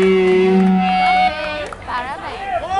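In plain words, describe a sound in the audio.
An electric guitar rings out loudly through loudspeakers.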